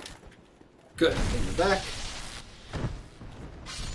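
A spell bursts with a loud rushing blast.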